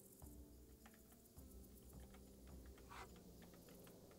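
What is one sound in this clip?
Dice clatter on a wooden table.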